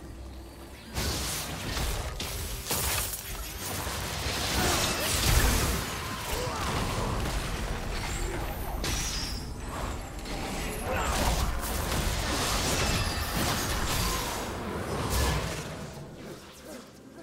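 Game spells blast, whoosh and crackle in a fast fight.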